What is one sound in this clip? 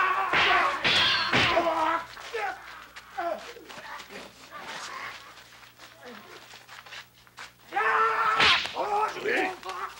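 Swords clash and clatter.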